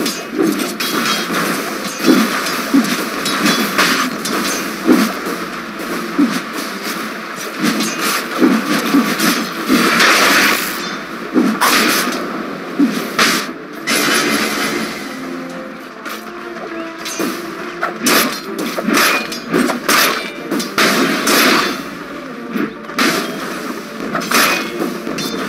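Weapons clash and spells burst in a fast fight.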